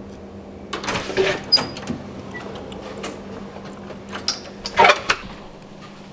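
A door knob turns and the latch clicks.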